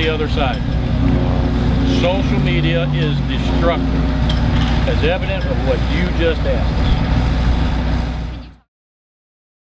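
A man speaks calmly into microphones outdoors.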